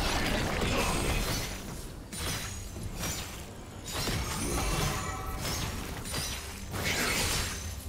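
Magic spells crackle and whoosh amid clashing combat effects.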